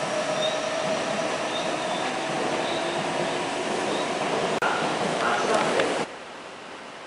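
An electric train rumbles along the tracks.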